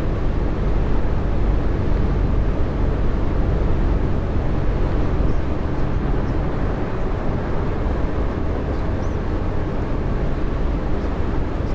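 Tyres roll along a road with a steady roar.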